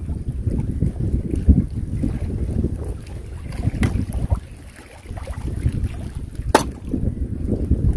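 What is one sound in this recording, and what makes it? Small waves lap at the shore.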